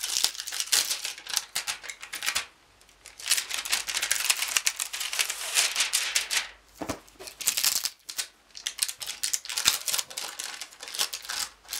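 Plastic wrapping crinkles and rustles under handling.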